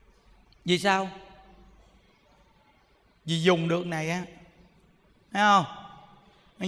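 A man speaks calmly into a microphone in short phrases, with pauses between them.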